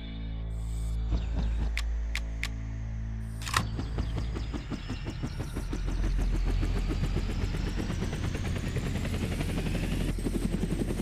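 A helicopter engine hums and its whine rises steadily in pitch.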